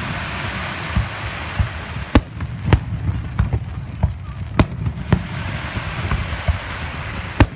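Fireworks crackle and pop after bursting.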